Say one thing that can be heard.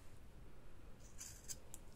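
Scissors snip through a ribbon.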